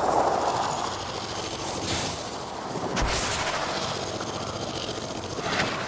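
A laser beam buzzes as it fires.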